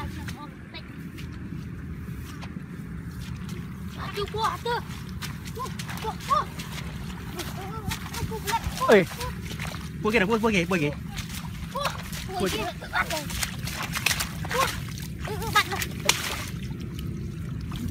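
Grass and plants rustle as boys dig by hand.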